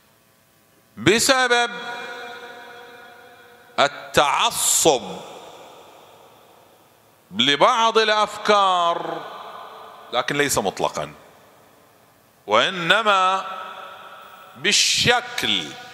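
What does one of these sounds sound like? A man speaks into a microphone in short, emphatic bursts, echoing through a large hall.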